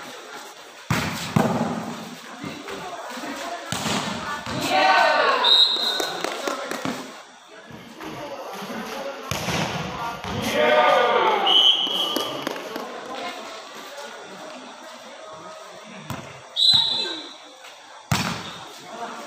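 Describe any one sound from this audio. A volleyball is struck with sharp slaps during play.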